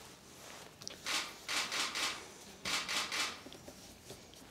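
A middle-aged woman speaks briefly and calmly into a microphone.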